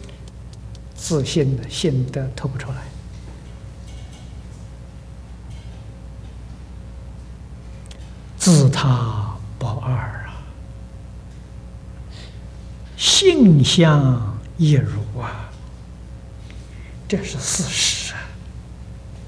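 An elderly man speaks calmly into a microphone, in short phrases with long pauses.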